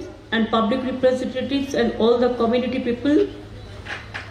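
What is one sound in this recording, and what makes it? An elderly woman speaks forcefully into a microphone, heard over loudspeakers.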